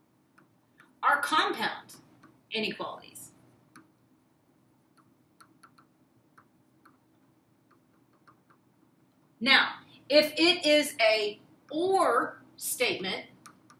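A woman speaks calmly nearby, in short phrases with pauses.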